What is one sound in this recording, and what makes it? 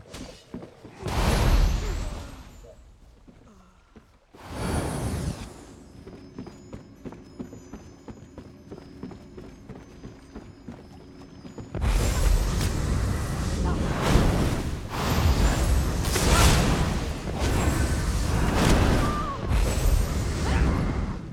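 Magic spells whoosh and crackle in loud bursts.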